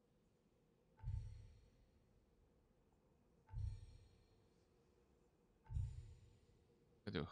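Soft interface chimes ring as menu selections change.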